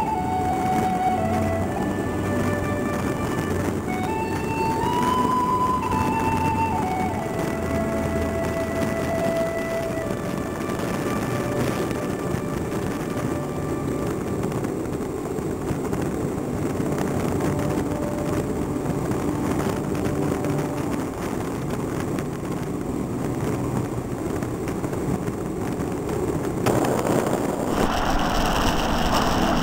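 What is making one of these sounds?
Wind rushes loudly past, as on a fast-moving vehicle.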